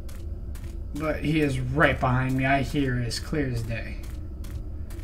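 A young man speaks with animation through a headset microphone.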